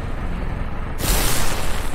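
An electric blast crackles and bursts loudly.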